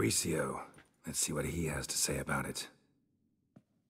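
A woman speaks calmly and close into a microphone.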